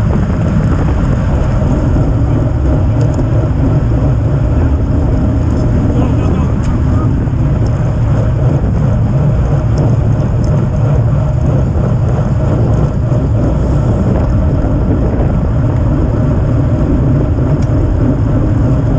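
Wind rushes loudly past, roaring steadily throughout.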